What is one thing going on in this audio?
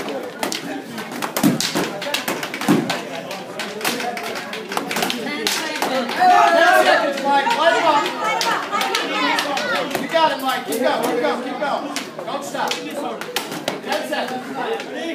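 Padded weapons strike and clack against each other in sharp, rapid hits.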